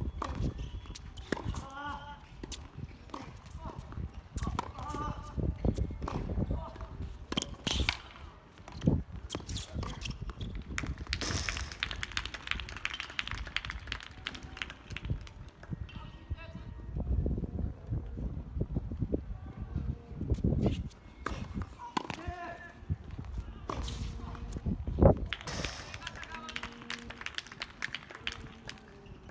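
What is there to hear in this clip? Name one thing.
A tennis ball is struck back and forth with rackets outdoors.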